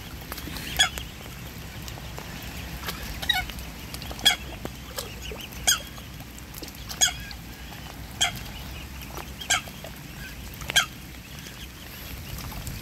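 Swans dabble and splash softly in shallow water.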